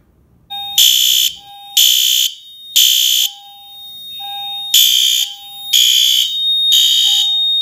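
A fire alarm horn blares in loud repeated bursts.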